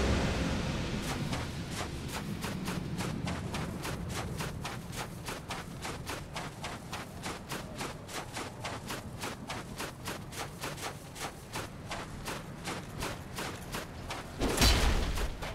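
Quick footsteps run over rough ground.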